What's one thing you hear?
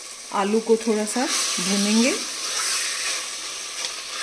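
A spatula scrapes and stirs food in a metal pot.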